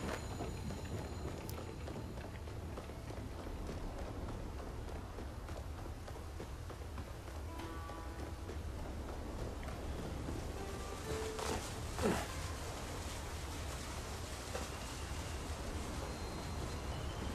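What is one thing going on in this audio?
Footsteps run quickly over stone and grass.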